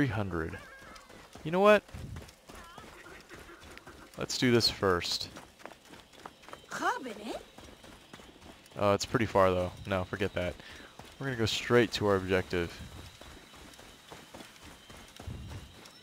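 Footsteps run over dry dirt.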